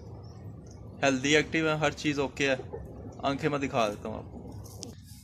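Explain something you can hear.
A pigeon coos loudly nearby.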